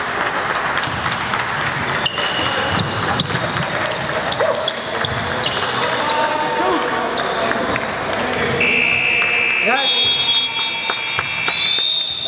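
A basketball bounces on the court.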